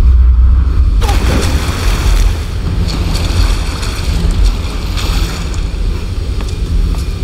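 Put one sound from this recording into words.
Water rushes and splashes loudly nearby.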